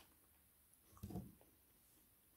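A glass knocks against a table.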